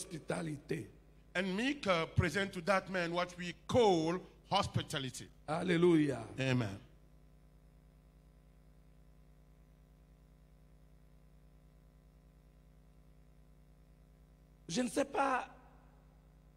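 An elderly man preaches with feeling into a microphone, with long pauses.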